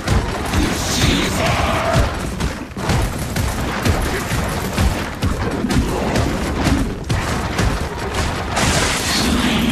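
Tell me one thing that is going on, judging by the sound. A chainsaw roars.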